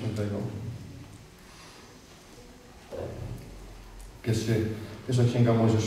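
A man speaks calmly through a microphone in an echoing hall.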